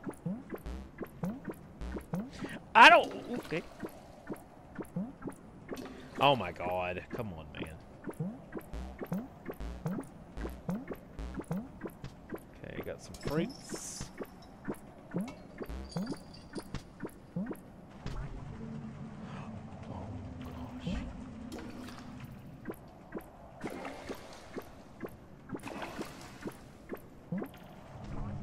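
Soft bubbles pop and plink in a quick, steady patter.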